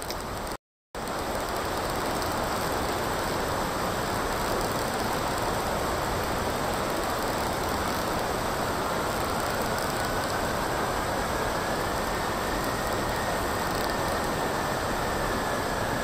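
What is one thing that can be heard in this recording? Water and wind rush past a foiling racing catamaran at speed.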